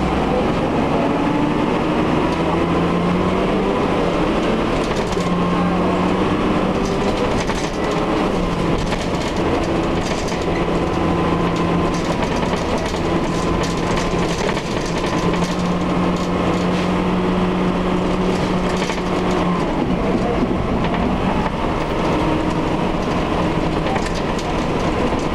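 Bus fittings rattle and creak.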